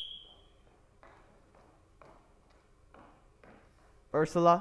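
Footsteps tap across a wooden stage.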